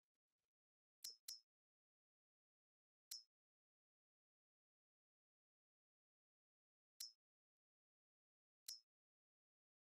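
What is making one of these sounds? Soft menu clicks sound now and then.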